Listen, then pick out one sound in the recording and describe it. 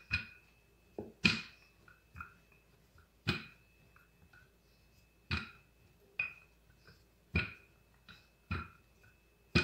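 A wooden rolling pin rolls and taps on a counter.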